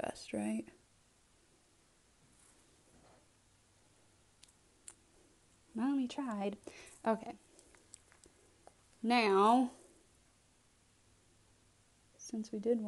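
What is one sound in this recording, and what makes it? A young woman talks calmly and close to a microphone, in short bursts.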